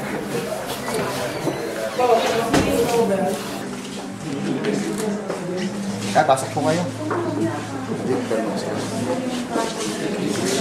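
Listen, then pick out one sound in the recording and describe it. A crowd of men and women talk over one another nearby.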